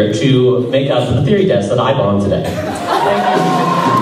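A young woman sings through a microphone and loudspeakers in a large hall.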